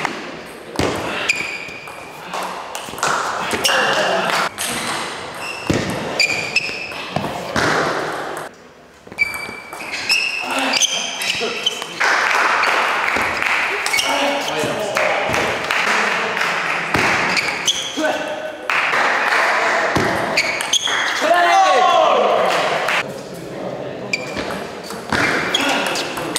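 A ping pong ball clicks back and forth off paddles and table.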